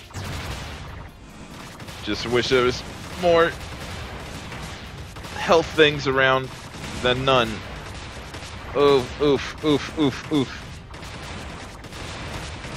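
Rapid laser shots fire in a steady stream.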